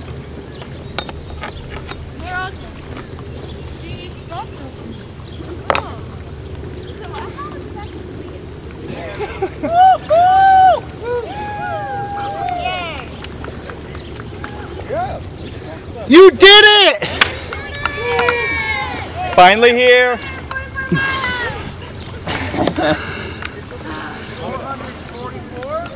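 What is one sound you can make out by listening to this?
Paddles splash gently in water.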